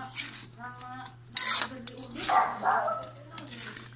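A metal spoon scrapes against a pan while stirring food.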